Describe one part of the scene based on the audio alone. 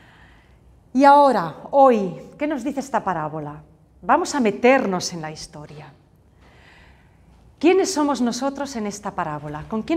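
A woman speaks with animation into a clip-on microphone, close by.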